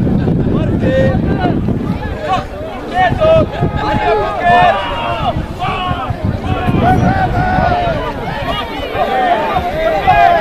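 Young men shout to each other outdoors, some way off.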